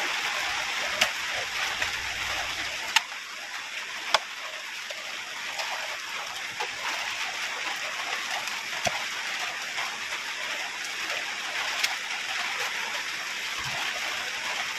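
A steel digging bar thuds into wet soil.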